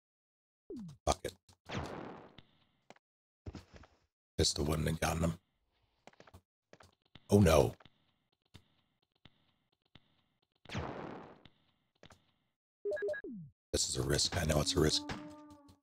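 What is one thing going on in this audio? Gunshots boom and echo.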